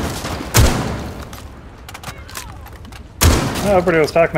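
Gunshots fire in loud bursts and splinter wood.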